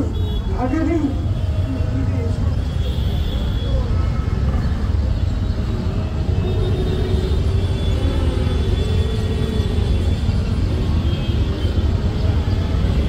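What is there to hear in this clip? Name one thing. A man chants through a loud, booming loudspeaker outdoors.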